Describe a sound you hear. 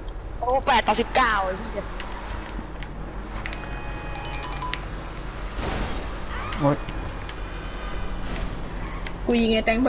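A car engine hums as a vehicle drives along a road.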